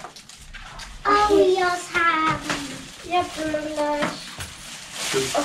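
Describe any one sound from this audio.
A young girl talks with animation nearby.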